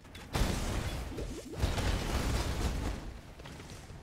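Video game spell blasts burst with booming impacts.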